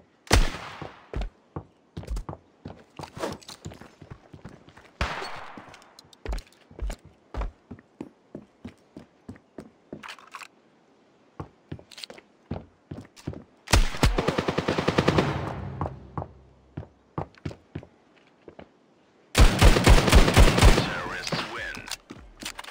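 Footsteps tap quickly on hard floors.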